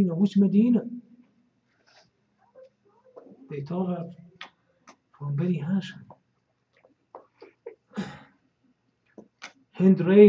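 An elderly man speaks slowly and earnestly into a microphone, with pauses.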